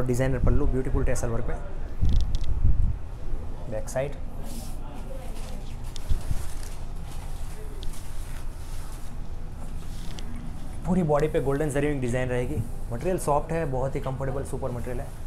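A man speaks close by as he presents something.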